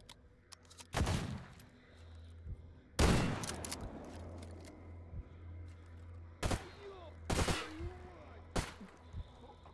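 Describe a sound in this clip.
Gunshots ring out loudly, each with a short echo.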